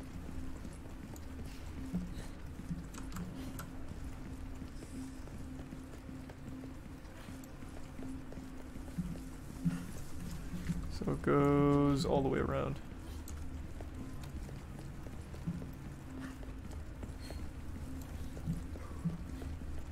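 Footsteps run over stone paving.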